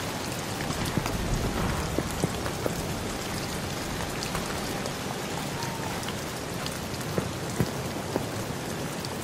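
Footsteps crunch slowly on dirt and wooden boards.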